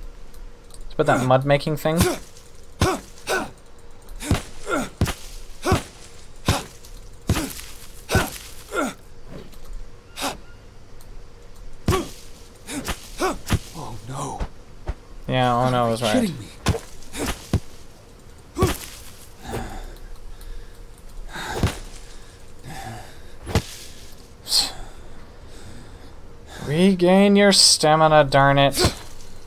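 A young man talks with animation into a close microphone, now and then.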